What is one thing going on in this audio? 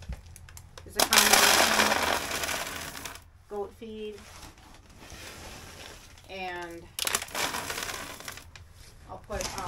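Dry granules pour and rustle from a scoop.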